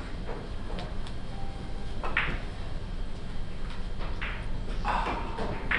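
Billiard balls click against each other and the cushions.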